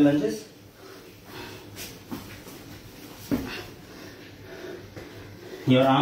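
Sneakers thump softly on a mat.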